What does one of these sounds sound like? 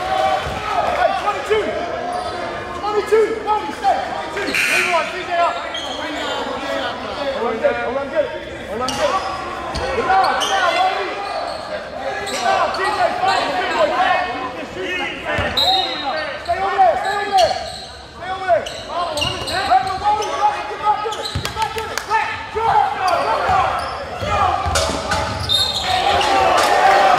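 A crowd of spectators talks and calls out nearby in an echoing gym.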